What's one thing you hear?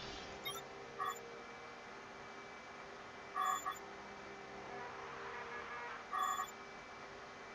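Short electronic menu beeps sound now and then.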